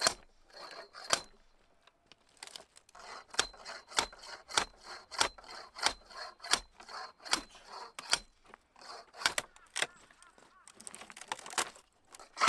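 A pole strikes a log with sharp, repeated knocks.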